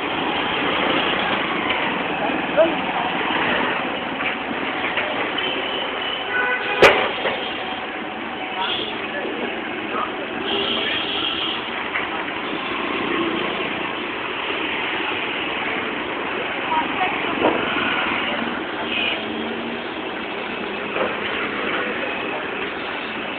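Traffic and motorbikes rumble by on a busy street outdoors.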